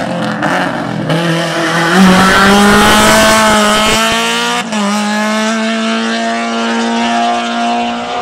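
A second rally car engine roars past up close and fades into the distance.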